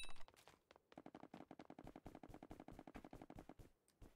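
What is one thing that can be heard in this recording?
Footsteps patter quickly and steadily on hard blocks.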